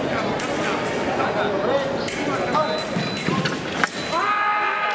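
Foil blades clash and scrape together in a large echoing hall.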